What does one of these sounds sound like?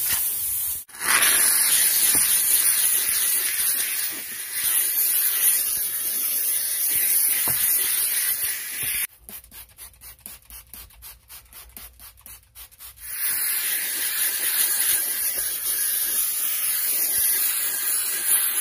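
A steam cleaner hisses loudly.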